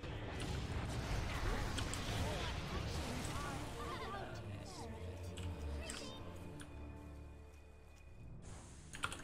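Game spells crackle and whoosh loudly.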